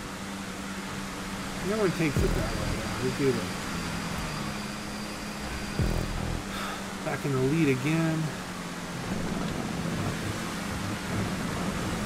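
A racing car's engine hums steadily at speed.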